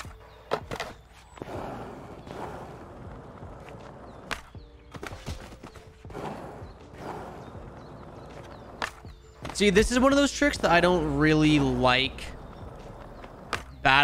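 Skateboard wheels roll over smooth concrete.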